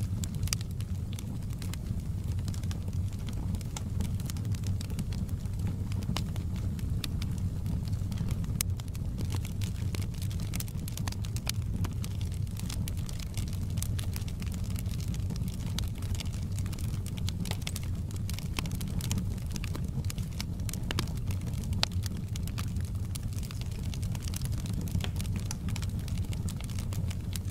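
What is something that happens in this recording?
A wood fire crackles and pops throughout.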